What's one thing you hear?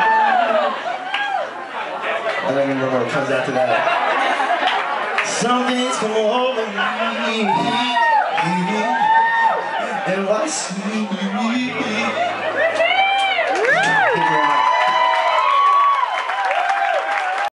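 A young man sings into a microphone over a loudspeaker system.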